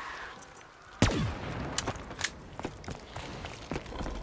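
Rapid gunshots crack out.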